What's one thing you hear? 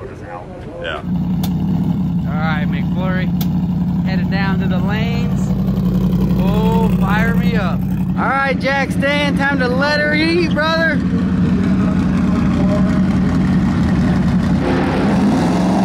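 A race car engine idles with a loud, rumbling burble.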